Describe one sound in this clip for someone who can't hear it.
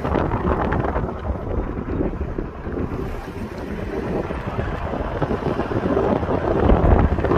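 A car engine hums as it drives along.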